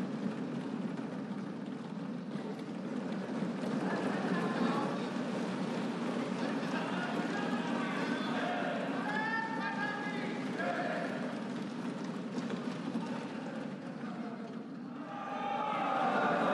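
A crowd of adults murmurs and talks in a large echoing hall.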